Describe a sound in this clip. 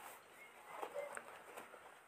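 A hand squishes and mashes soft food in a bowl.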